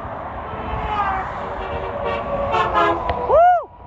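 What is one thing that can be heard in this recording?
A large truck rumbles closer and passes by.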